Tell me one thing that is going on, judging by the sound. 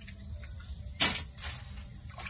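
Metal clanks against a metal bowl.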